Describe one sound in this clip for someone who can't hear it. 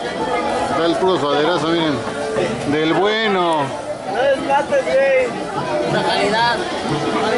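A young man speaks loudly and with animation close by.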